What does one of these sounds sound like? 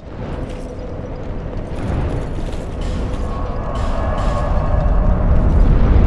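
A low rushing whoosh swells as mist rises.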